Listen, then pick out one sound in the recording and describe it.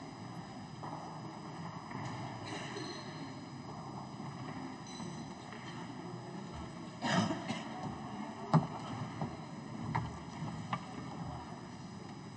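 A crowd of men and women murmur quietly in a large echoing hall.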